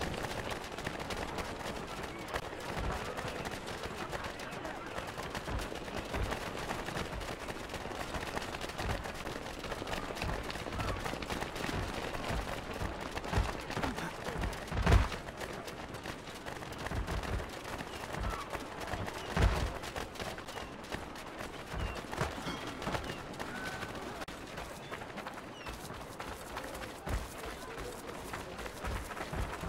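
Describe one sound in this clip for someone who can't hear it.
Footsteps run on cobblestones.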